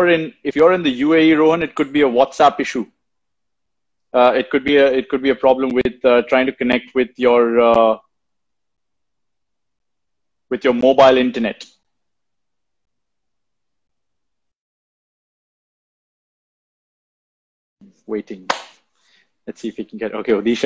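A young man speaks calmly over an online call, with pauses.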